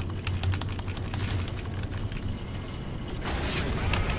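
A spaceship's energy guns fire in bursts.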